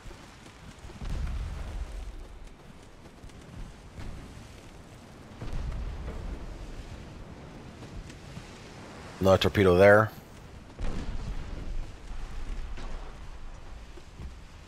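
Ship guns fire with deep, rumbling booms.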